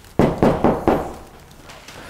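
A fist knocks on a door several times.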